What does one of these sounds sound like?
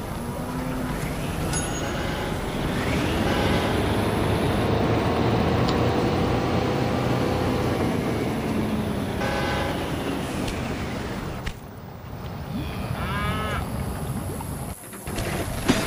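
A train rumbles along the tracks.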